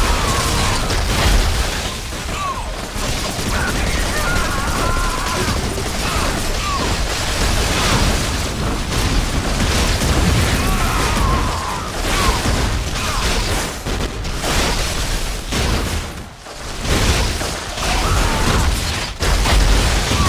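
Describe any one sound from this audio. Icy magic blasts crackle and whoosh in a game fight.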